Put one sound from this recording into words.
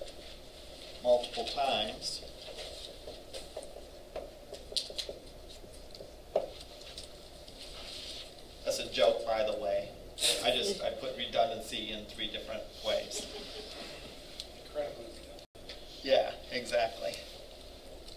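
An older man speaks calmly, lecturing.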